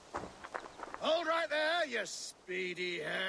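A man's deep voice calls out loudly, ordering someone to stop.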